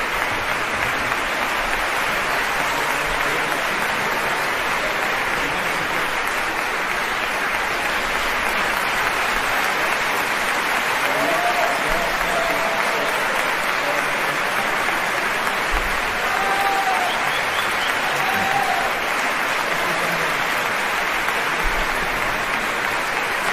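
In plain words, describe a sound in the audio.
A large audience applauds steadily in a big hall.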